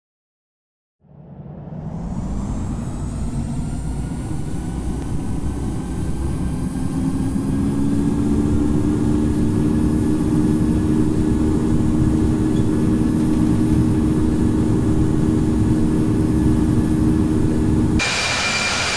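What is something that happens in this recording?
Jet engines roar and rise in pitch as an airliner speeds down a runway.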